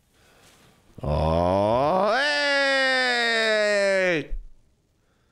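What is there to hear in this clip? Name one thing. A young man sings out a long, wavering note that slides down.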